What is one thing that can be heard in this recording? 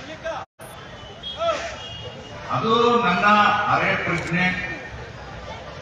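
An elderly man speaks firmly into a microphone over a loudspeaker.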